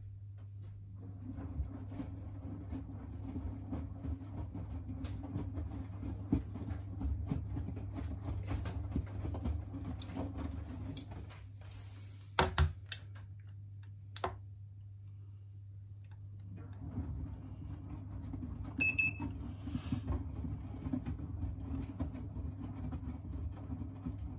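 A washing machine drum tumbles laundry with soft thumps and swishes.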